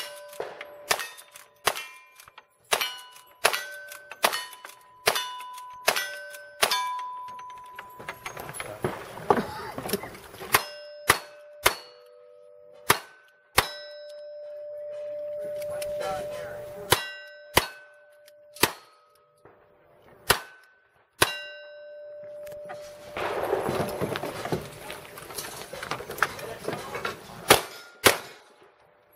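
Steel targets ring out after the shots.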